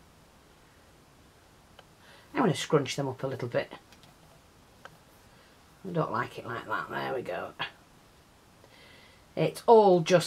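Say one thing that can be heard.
Fingers press and rustle a card with faint clicks.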